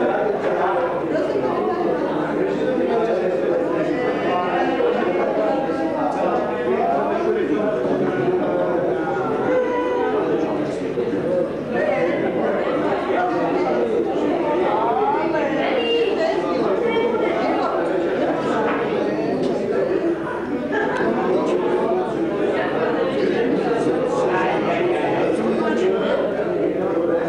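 Several middle-aged women talk loudly close by.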